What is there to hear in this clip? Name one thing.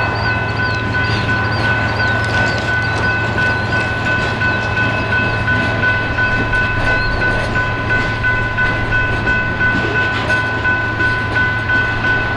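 Train wheels squeal with a steady high whine.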